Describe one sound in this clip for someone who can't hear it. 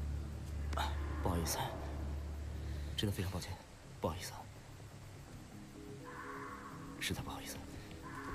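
A man speaks quietly.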